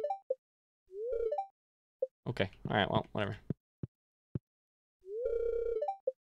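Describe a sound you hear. Short chirpy electronic game sounds play in quick bursts.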